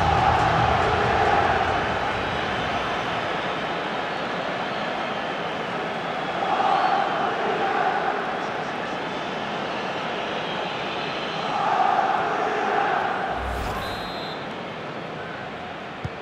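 A large stadium crowd roars and cheers, swelling in waves.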